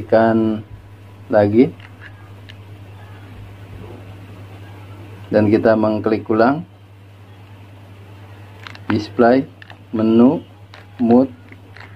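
Buttons on a remote control click softly as a finger presses them.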